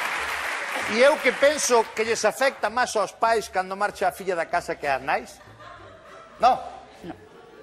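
A man talks and jokes cheerfully into a microphone.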